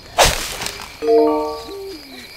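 A short bright chime rings as an item is collected.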